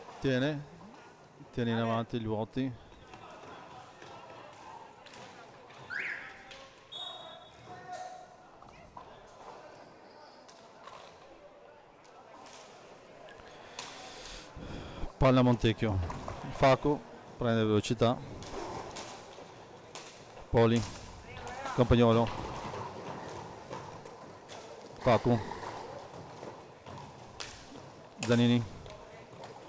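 Roller skate wheels rumble across a hard floor.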